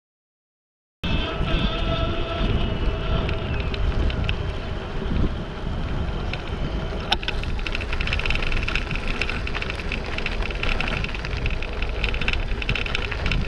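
Tyres roll steadily over a paved path.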